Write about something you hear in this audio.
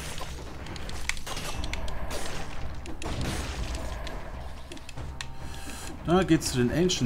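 Weapon hits and blasts crack in quick succession during a fight.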